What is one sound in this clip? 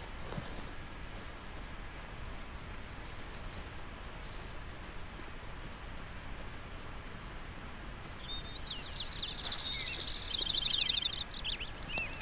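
Footsteps crunch through dry grass and undergrowth.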